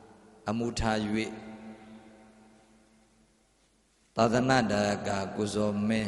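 A man chants through a microphone in a slow, reciting voice.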